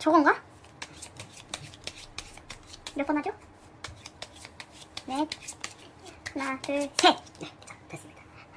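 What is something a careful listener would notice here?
Playing cards flick and riffle as a deck is shuffled.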